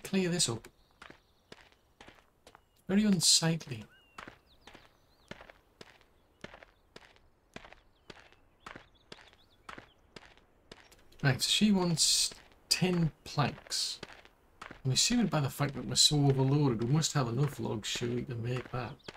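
Footsteps crunch steadily on gravel and stones.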